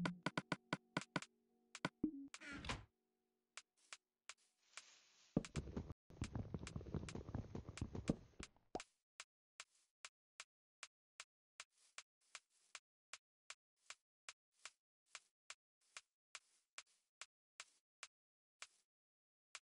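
Short game menu clicks tick again and again.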